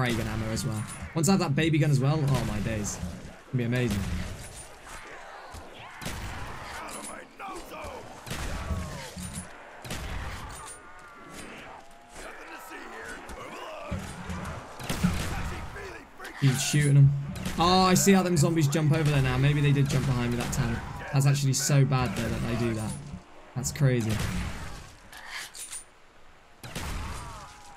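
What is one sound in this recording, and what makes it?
Pistols fire in quick bursts of sharp shots.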